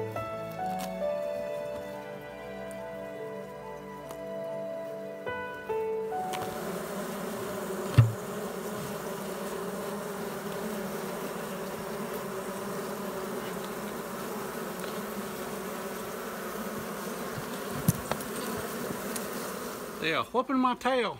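Bees buzz in a dense, steady drone close by.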